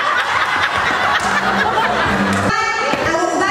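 A woman laughs loudly into a microphone.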